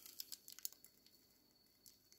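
A plastic bag crinkles as it is squeezed.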